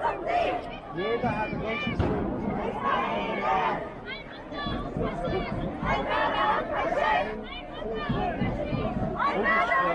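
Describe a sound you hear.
A crowd of men and women chants loudly outdoors.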